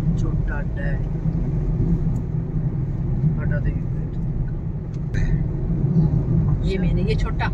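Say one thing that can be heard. A car engine hums steadily from inside the car as it drives.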